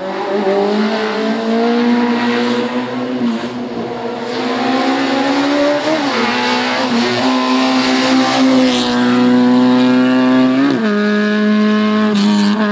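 A rally car engine roars loudly, rising in pitch and dropping sharply at each gear change.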